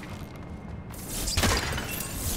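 A bowstring twangs as an arrow flies off with a whoosh.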